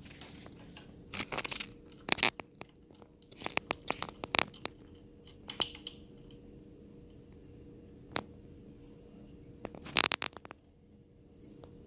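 Plastic clips snap and rattle as a cable is fitted.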